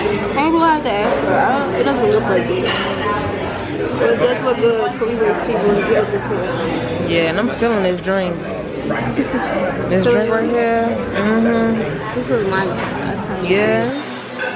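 A spoon scrapes through guacamole in a stone bowl.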